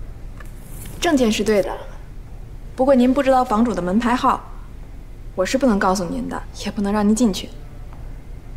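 A woman speaks calmly and politely nearby.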